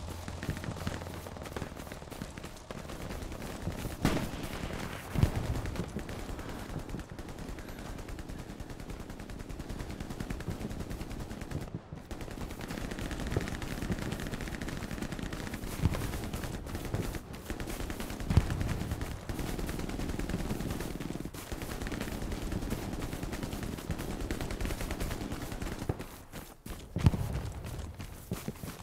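Footsteps tread steadily through grass and over a dirt track.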